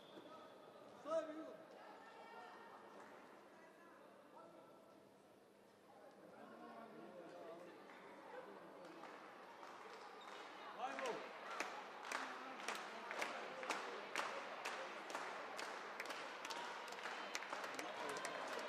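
Spectators chatter in a large echoing hall.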